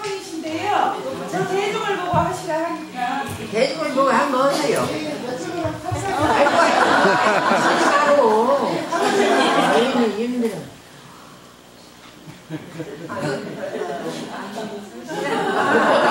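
An elderly woman speaks animatedly, close by.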